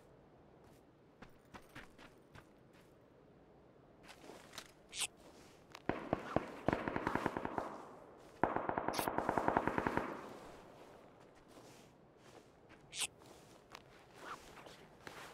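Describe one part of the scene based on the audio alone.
Footsteps run over dry ground.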